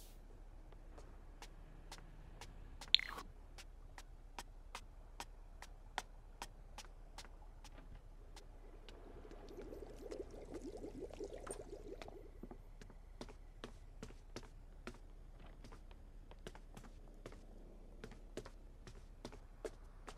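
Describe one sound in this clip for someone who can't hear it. Footsteps thud at a steady walking pace.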